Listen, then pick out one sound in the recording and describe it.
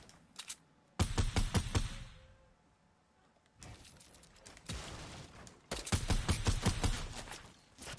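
Rapid gunshots fire in sharp bursts.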